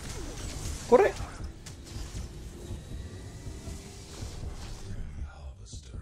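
Magical energy blasts whoosh and crackle.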